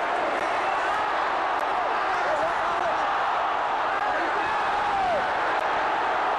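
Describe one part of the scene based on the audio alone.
A crowd whistles shrilly.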